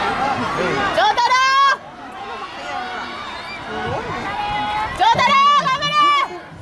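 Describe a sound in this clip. Children's high voices shout loudly.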